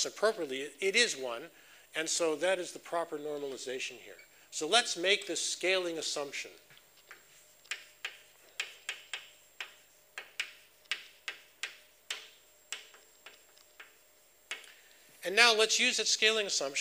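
A man lectures calmly.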